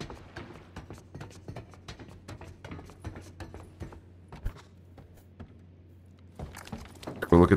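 Footsteps clatter on ladder rungs and a wooden floor.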